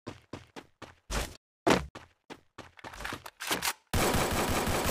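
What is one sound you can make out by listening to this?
Quick footsteps thud on the ground.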